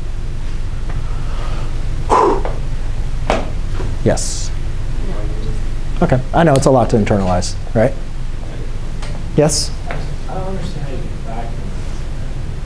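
A man speaks calmly and clearly nearby, as if explaining something.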